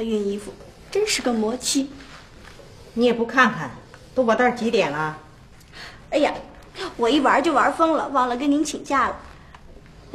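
A middle-aged woman speaks calmly, close by.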